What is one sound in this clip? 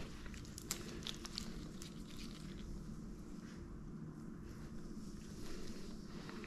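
Scissors snip through thick fur in small, quick cuts.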